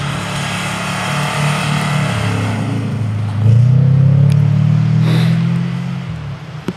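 Car tyres spin and hiss on snow.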